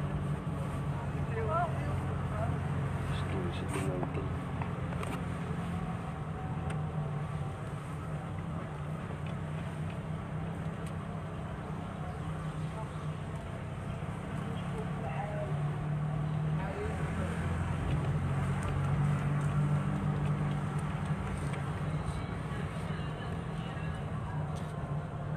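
A car engine hums steadily from inside the car as it drives slowly.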